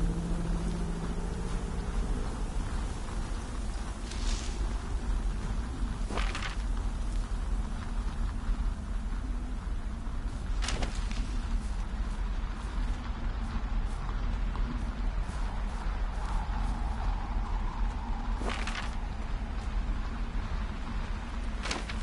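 A fire roars with a deep, steady rumble.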